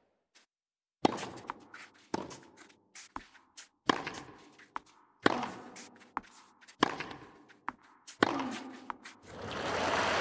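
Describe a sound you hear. A tennis ball is struck back and forth with sharp pops.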